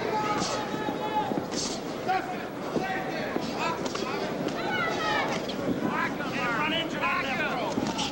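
A large crowd murmurs and cheers in a big hall.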